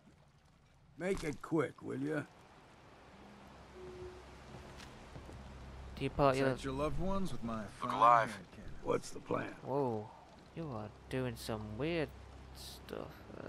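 An elderly man speaks in a gruff, calm voice.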